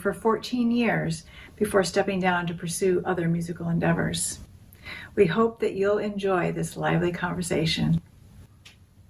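A middle-aged woman talks calmly and warmly, close to a microphone.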